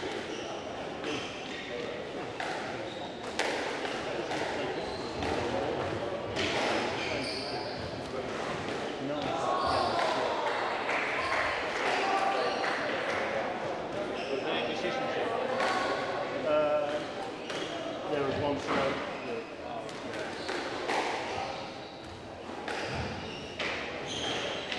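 A crowd of spectators chatters and murmurs in an echoing hall.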